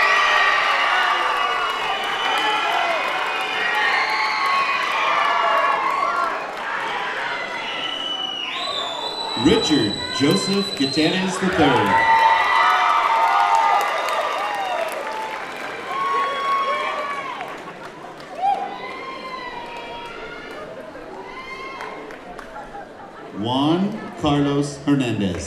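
A crowd cheers and whoops in a large echoing hall.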